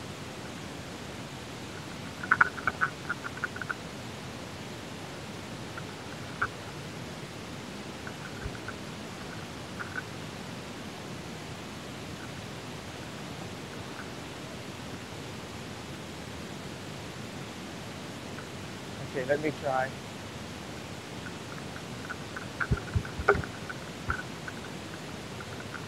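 Bicycle tyres roll steadily over a dirt path.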